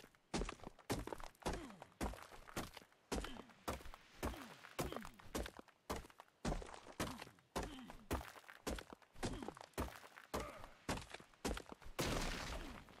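A pickaxe strikes rock in quick, regular blows.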